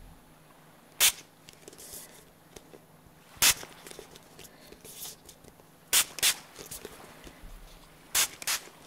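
A spray bottle squirts in short, sharp hissing bursts close by.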